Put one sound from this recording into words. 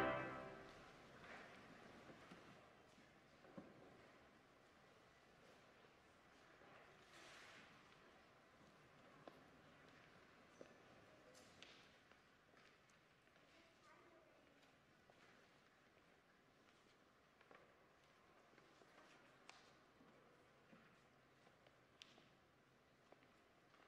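Footsteps and shuffling echo faintly through a large, reverberant hall.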